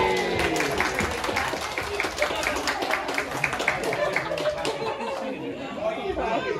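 A group of adults sings together nearby.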